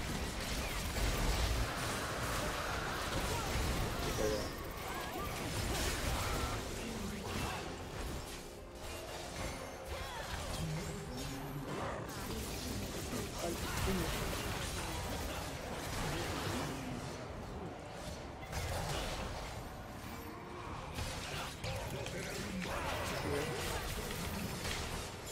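Game sound effects clash and blast.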